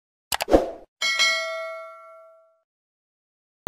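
A bell chimes and rings out.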